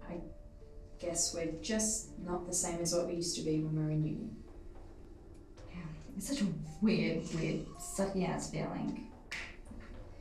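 A young woman speaks with irritation, close by.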